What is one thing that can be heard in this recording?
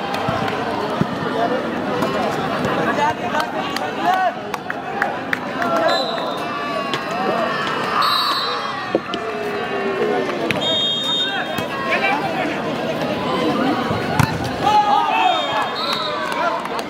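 Young men shout to one another during play.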